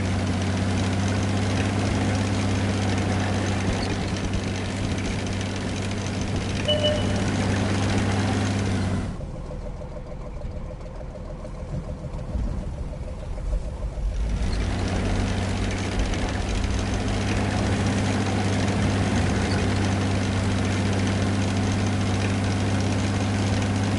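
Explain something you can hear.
A tank engine rumbles with a low, steady drone.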